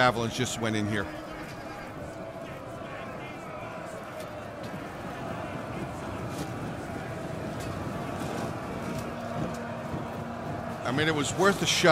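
Weapons clash and soldiers shout in a large battle.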